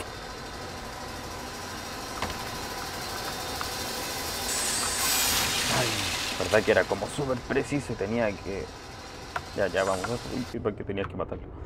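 A spinning saw blade grinds loudly against metal.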